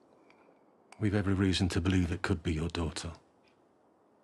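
An older man speaks in a low, firm voice, close by.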